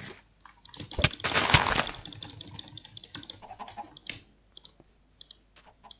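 Blocks are placed with soft thuds.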